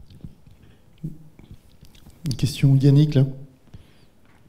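Another man speaks up from across the room.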